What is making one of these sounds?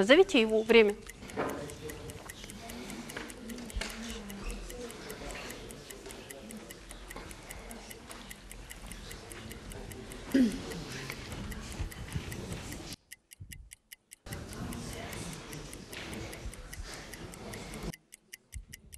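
Men and women murmur quietly in the background.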